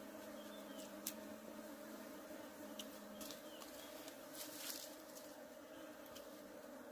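Bees buzz steadily in a swarm close by.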